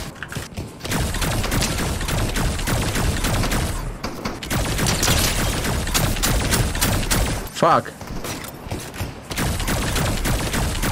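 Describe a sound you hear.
Rapid gunfire crackles in a video game.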